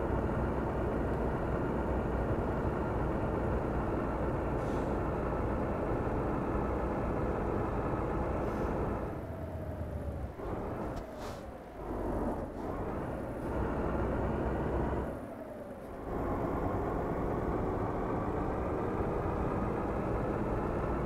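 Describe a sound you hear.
A truck engine drones steadily as it drives along, briefly dropping and rising again as gears change.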